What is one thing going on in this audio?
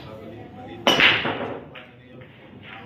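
Pool balls clatter and roll across the table.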